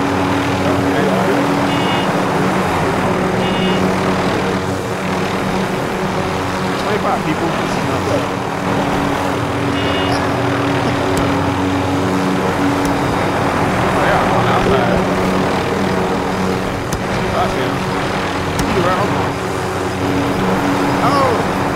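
A helicopter's rotor thumps and its engine drones steadily.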